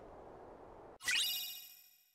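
A bright chime rings out briefly.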